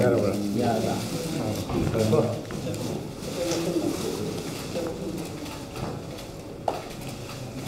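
A man speaks into microphones in a room, a little away.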